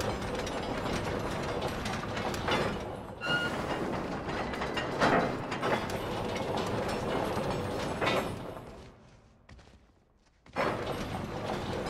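A heavy wooden winch creaks and grinds as it turns.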